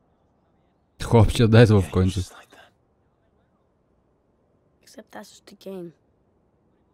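A man speaks calmly at close range.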